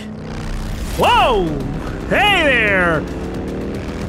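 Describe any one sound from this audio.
A motorcycle engine revs loudly close by.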